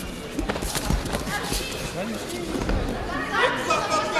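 A judoka is thrown and lands with a thud on a judo mat.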